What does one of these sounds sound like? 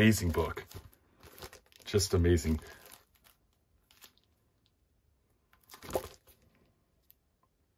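Plastic wrapping crinkles as books are handled.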